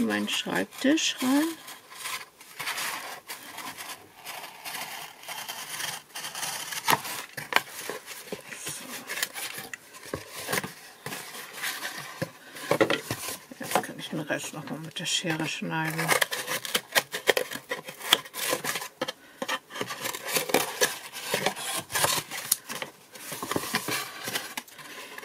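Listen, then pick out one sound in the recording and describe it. Cardboard rustles and scrapes as hands fold and shift it.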